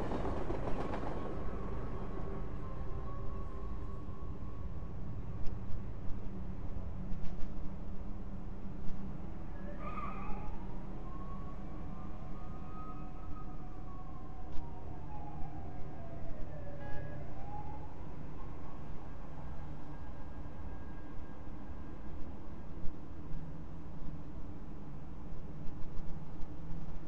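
A low magical hum drones steadily.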